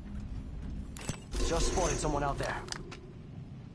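A gun clicks and clatters as it is swapped.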